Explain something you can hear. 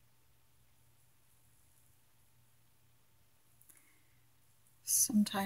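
Yarn rustles softly as a needle is drawn through knitted fabric.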